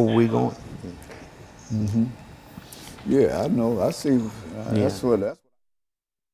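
A second man answers calmly into a microphone.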